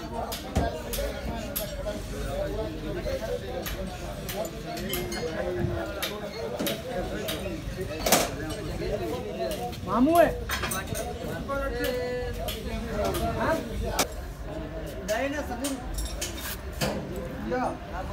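Metal parts clink and scrape as a gear is worked onto a housing.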